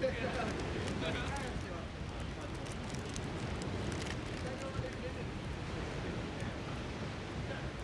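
A young man talks casually close to the microphone.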